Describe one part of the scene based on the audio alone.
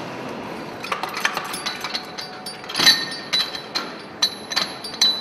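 A machine clatters with sharp metallic knocks.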